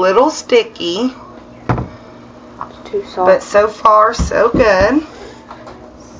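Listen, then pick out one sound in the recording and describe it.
A bar of soap is set down on a wooden table with a soft knock.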